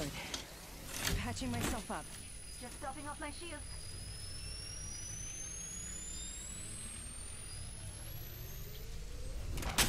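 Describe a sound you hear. A healing device whirs and charges up with a rising electronic tone.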